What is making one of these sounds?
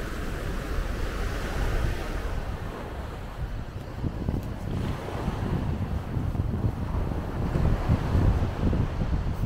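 Small waves wash up and fizz over the sand close by.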